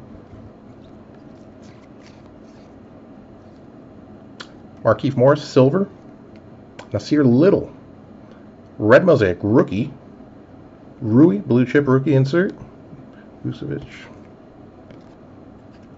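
Trading cards slide against each other as they are shuffled.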